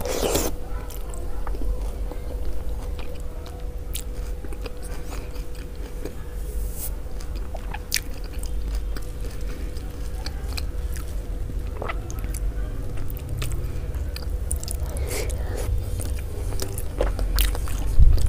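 Soft food squishes and crackles as it is crumbled by hand.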